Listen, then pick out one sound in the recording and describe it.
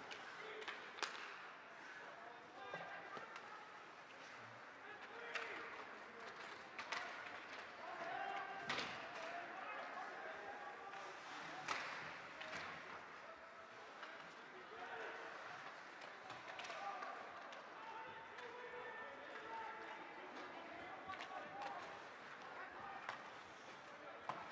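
Hockey sticks click against a puck and each other.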